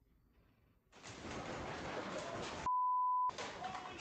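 A dog barks loudly close by.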